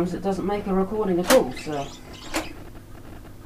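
Switches on a reel-to-reel tape recorder click.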